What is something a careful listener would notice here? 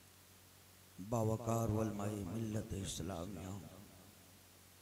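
A man speaks through a microphone and loudspeakers in a slow, drawn-out chanting voice.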